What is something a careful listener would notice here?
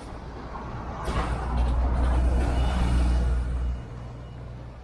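A bus engine rumbles loudly close by as the bus passes.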